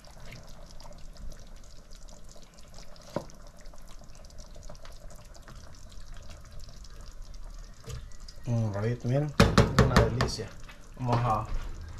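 A wooden spoon scrapes and taps against a pot.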